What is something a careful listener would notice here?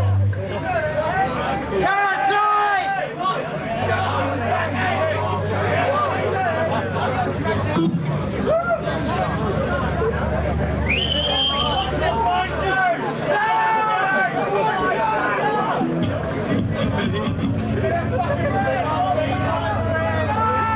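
A band plays loud live music in an echoing hall.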